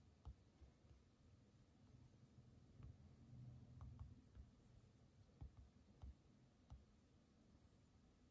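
Fingertips tap softly on a touchscreen.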